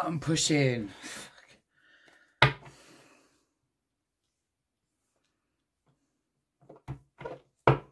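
A deck of cards is handled and tapped on a table.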